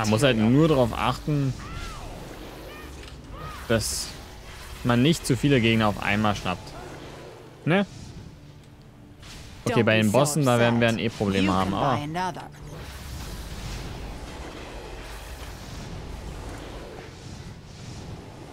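Magic blasts and impacts crackle in a game.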